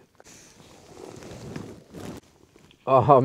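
A man gulps a drink.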